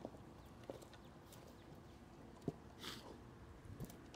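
A wooden branch thuds as it is dropped onto a log.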